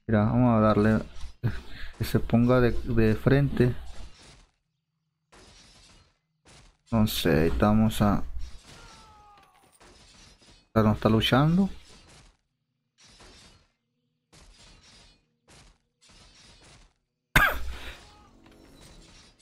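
Metal weapons clash and clang in a fight.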